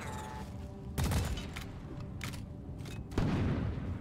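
A gun is reloaded with sharp metallic clicks.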